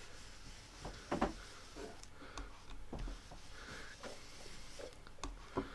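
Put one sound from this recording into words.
A sponge dabs and rubs softly on paper.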